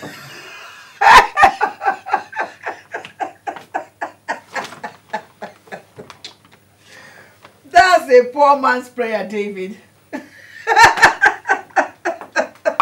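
A middle-aged woman laughs loudly.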